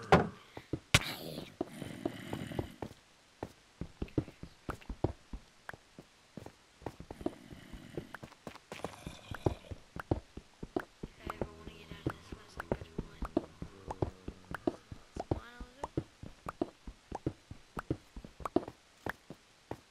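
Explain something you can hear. A pickaxe chips rapidly at stone, with blocks cracking and breaking.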